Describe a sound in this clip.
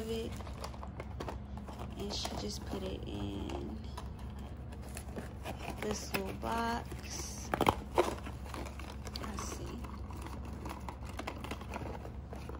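Cardboard packaging rustles and scrapes as it is handled close by.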